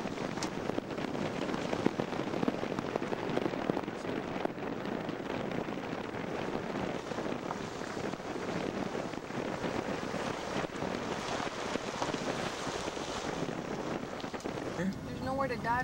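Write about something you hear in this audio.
Tyres rumble over a dirt track.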